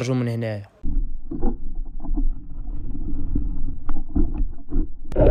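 Water churns with a low, muffled underwater rumble.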